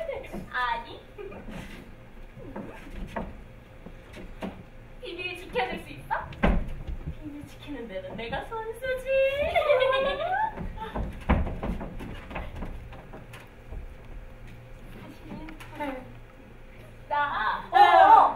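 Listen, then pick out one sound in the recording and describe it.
Young women speak with animation in a room with some echo.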